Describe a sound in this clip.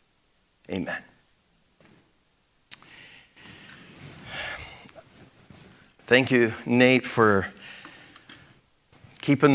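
A middle-aged man speaks with animation through a clip-on microphone.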